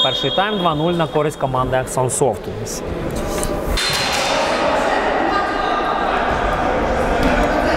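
Players run and their shoes squeak on a hard court in a large echoing hall.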